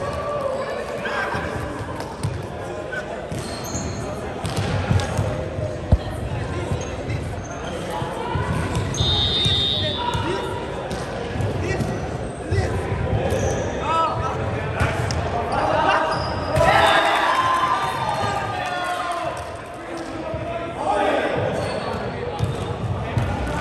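Young men call out and chatter in a large echoing hall.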